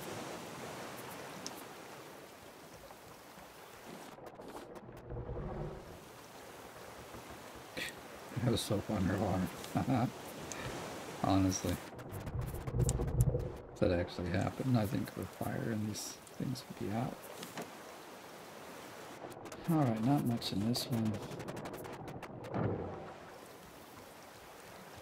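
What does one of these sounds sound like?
Ocean waves wash softly all around.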